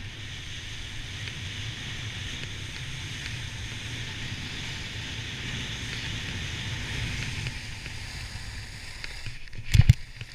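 Wind rushes past the skier.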